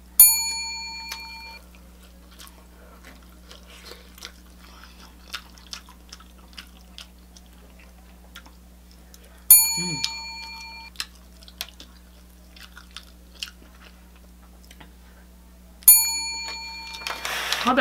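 A woman chews food with wet smacking sounds close to the microphone.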